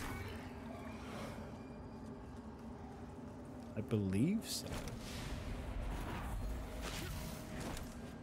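A sword swooshes through the air.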